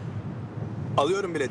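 A man exclaims loudly and with alarm close by.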